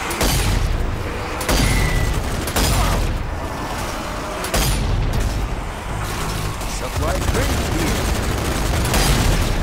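A rifle fires loud single shots that echo off rock walls.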